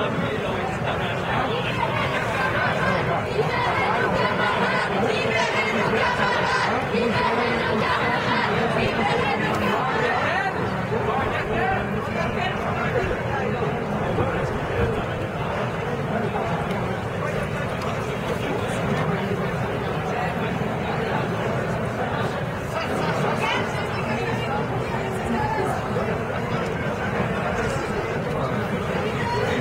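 A crowd of men and women murmur and talk outdoors.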